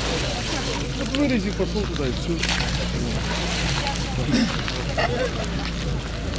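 Water splashes as a man bathes in an icy pool.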